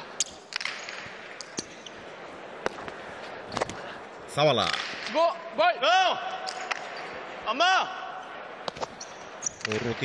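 A hard ball cracks sharply against a wall, echoing in a large hall.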